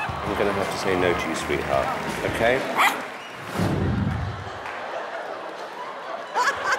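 A large audience laughs and cheers in a big hall.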